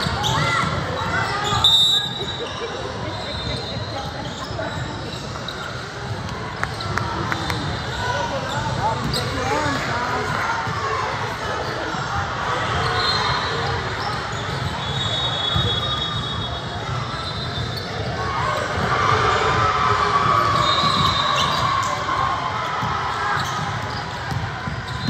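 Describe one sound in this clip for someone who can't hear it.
Players and spectators call out, echoing in a large gym.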